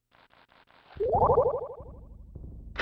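A short electronic jingle sounds.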